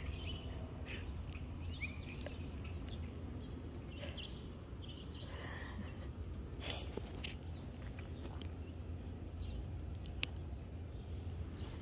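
A hand softly strokes a cat's fur.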